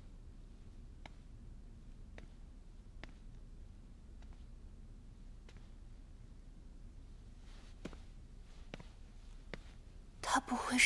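Soft footsteps tap on a hard floor.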